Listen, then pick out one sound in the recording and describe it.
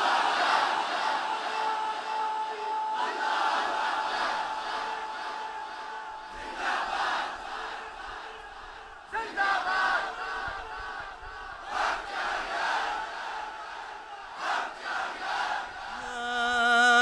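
A man speaks through a microphone with animation, echoing in a hall.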